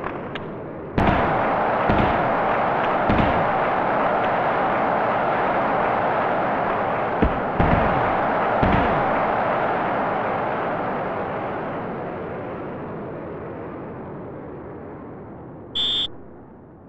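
A crowd roars steadily in a large arena and slowly fades.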